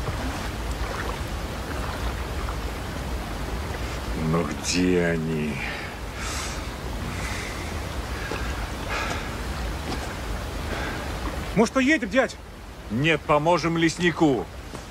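A river rushes steadily in the background.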